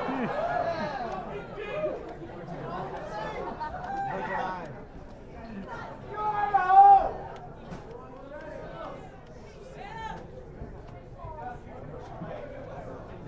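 A man talks into a microphone over loudspeakers.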